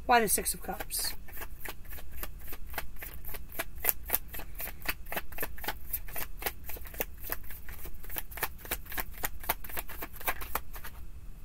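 Cards are shuffled with rapid, steady riffling flicks.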